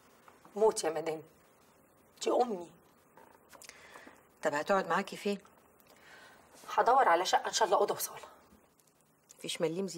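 Another middle-aged woman answers calmly, close by.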